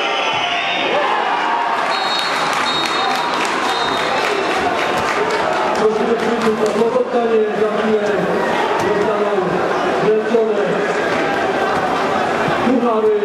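A large crowd cheers outdoors.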